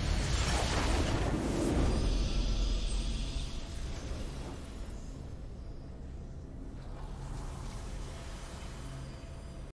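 A triumphant victory fanfare plays.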